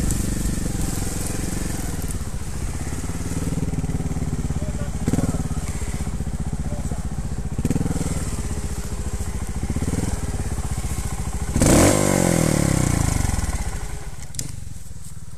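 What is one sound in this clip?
A trial motorbike engine idles and revs nearby.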